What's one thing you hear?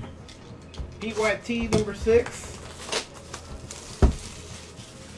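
A cardboard box is handled and bumps down.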